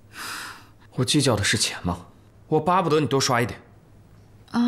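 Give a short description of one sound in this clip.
A young man speaks quietly and earnestly nearby.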